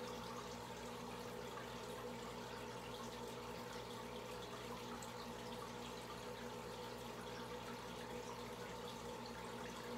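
A stream of air bubbles fizzes and bubbles in an aquarium.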